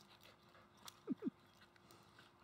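A small dog yelps briefly twice.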